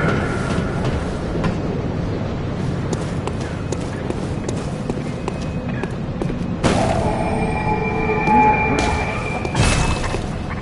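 Footsteps hurry across stone paving.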